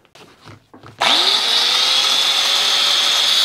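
An angle grinder spins up with a rising whine and grinds metal with a loud, steady screech.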